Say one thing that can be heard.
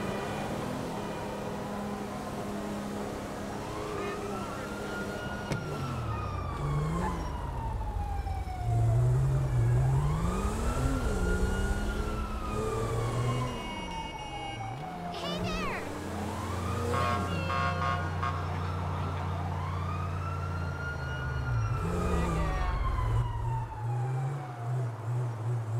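A car engine hums and revs as it drives.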